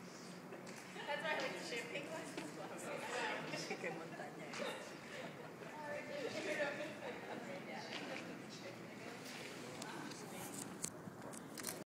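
A group of men and women chatter and laugh outdoors nearby.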